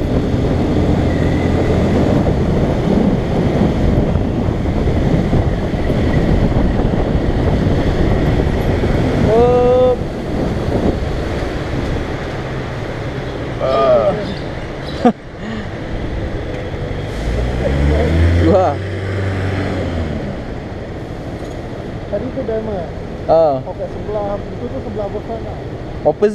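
A motorcycle engine hums and revs while riding.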